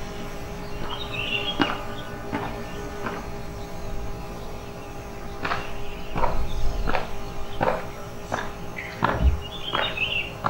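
Boots stamp sharply on the ground as a squad marches.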